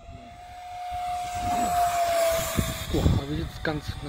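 Air rushes as an electric ducted-fan model jet passes close overhead.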